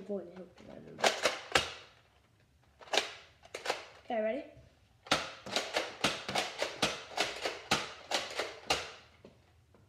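A toy blaster clicks and snaps sharply, many times.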